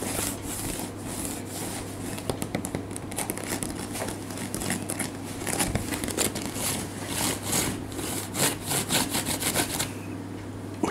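Fingers scratch and tap on a bamboo mat.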